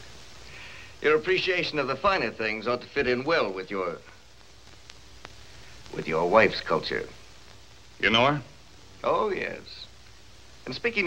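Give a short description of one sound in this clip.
A man speaks calmly and with amusement, close by.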